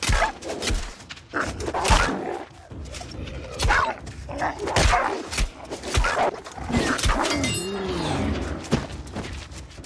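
A wolf growls and snarls.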